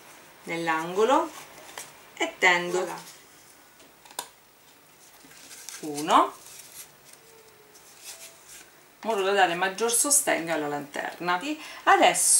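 A cardboard carton rustles and creaks as it is folded by hand.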